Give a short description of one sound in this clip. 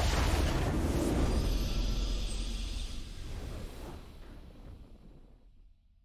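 A triumphant game fanfare swells and slowly fades.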